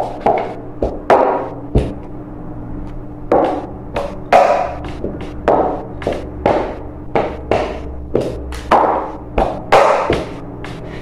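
Plastic bowls clatter and knock on a table.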